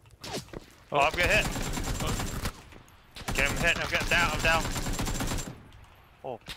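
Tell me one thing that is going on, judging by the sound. Gunshots fire in rapid bursts close by.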